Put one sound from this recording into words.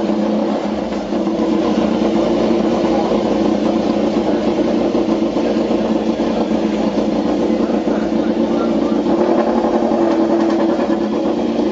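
A racing motorcycle engine idles loudly and revs close by.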